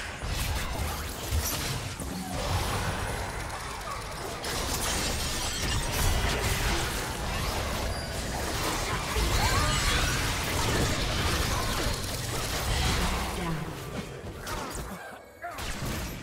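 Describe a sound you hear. Game spell effects whoosh, crackle and burst during a hectic fight.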